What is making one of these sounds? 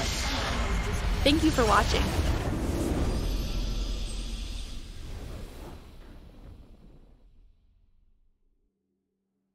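A victory fanfare swells and fades out.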